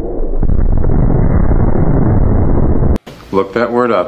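A huge explosion roars with a deep rumble.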